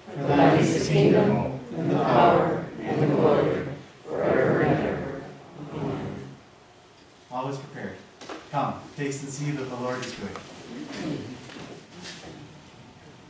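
A man speaks aloud in an echoing hall.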